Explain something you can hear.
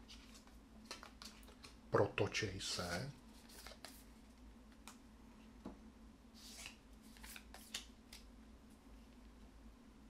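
Playing cards rustle and tap on a table.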